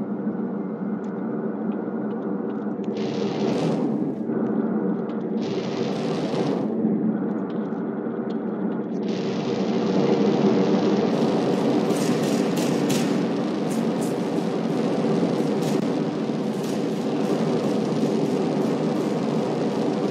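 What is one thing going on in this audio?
A jetpack roars steadily with a rushing thrust.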